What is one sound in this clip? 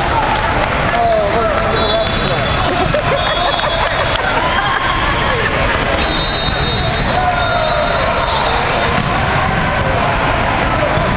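Many voices chatter and call out across a large echoing hall.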